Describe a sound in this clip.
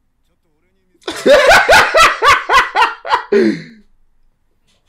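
Two young men laugh together close by.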